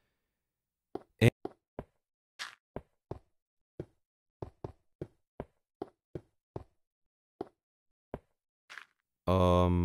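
Footsteps tap lightly on stone at an even pace.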